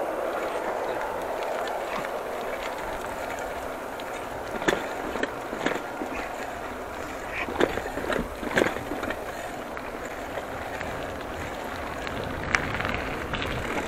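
Bicycle tyres roll steadily over pavement outdoors.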